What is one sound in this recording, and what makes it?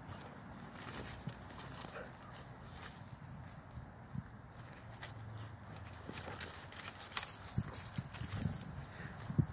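Two dogs scuffle and tumble on grass while play-fighting.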